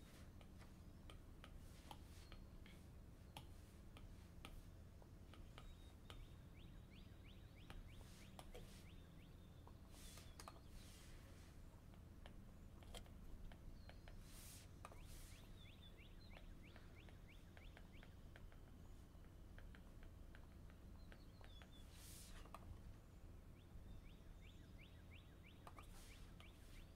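A stylus taps and scratches on a tablet.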